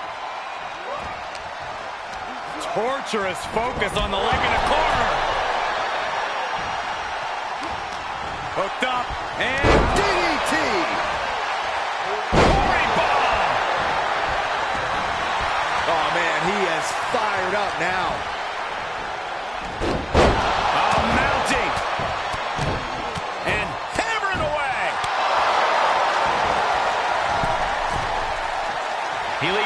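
A large crowd cheers and roars throughout, echoing in a big arena.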